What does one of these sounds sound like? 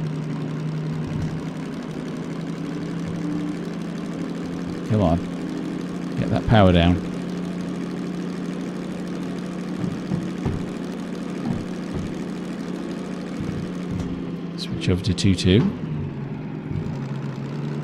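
A diesel locomotive engine drones under load.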